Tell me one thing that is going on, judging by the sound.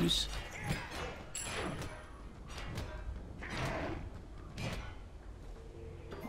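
Weapons strike and magic bursts crackle in a fight.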